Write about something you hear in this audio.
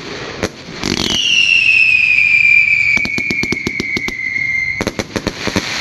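A firework whistles with a falling pitch.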